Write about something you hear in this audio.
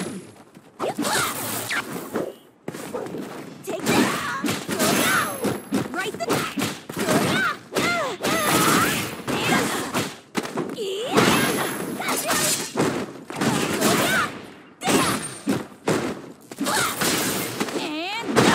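Punches and kicks land with sharp smacks in a fighting game.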